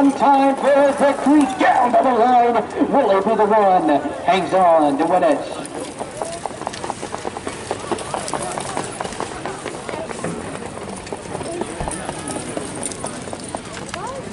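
Horses' hooves thud on a dirt track.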